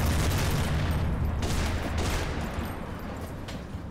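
Footsteps thud quickly on a hard surface as soldiers run.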